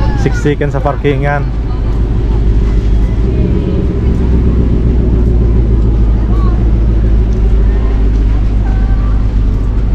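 Car engines idle with a low, steady rumble.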